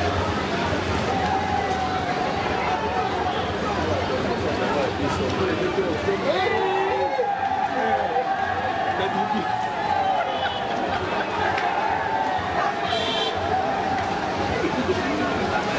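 A large crowd of men and women chatters and calls out outdoors.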